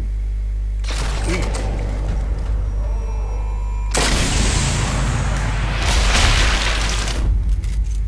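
A rifle shot cracks loudly and echoes.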